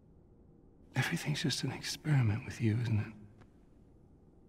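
A man speaks calmly with a questioning tone, close by.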